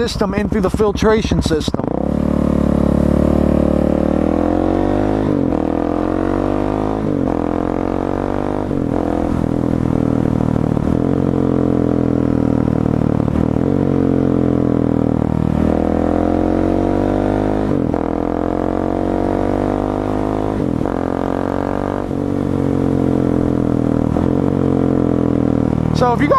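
A motorcycle engine revs and drones close by, rising and falling in pitch as gears shift.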